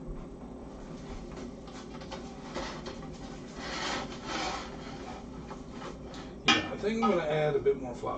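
A whisk scrapes and stirs inside a metal pot.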